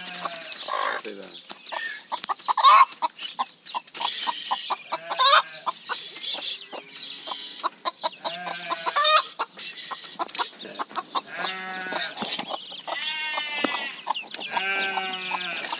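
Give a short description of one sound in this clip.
Chicks cheep in high, shrill peeps.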